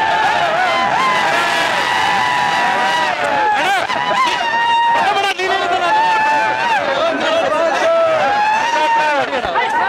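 A crowd of young men cheers and shouts loudly close by.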